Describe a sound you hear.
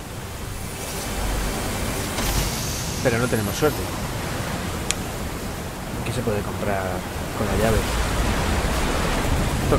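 A waterfall rushes close by.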